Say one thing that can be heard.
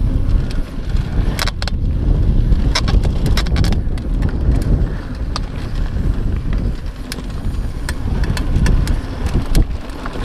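Wind rumbles hard against the microphone.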